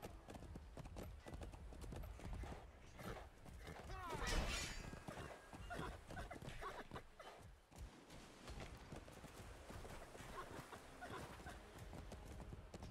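A horse's hooves thud steadily on the ground at a gallop.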